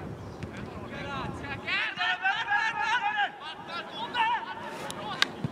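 Football players shout to one another across an open field.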